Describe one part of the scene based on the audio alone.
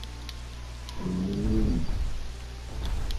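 A large dinosaur gives a deep, rumbling bellow.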